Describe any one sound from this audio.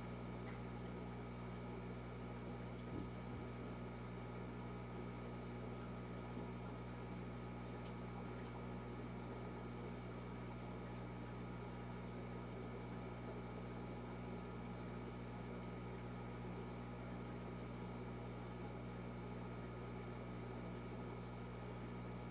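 Water bubbles softly and steadily.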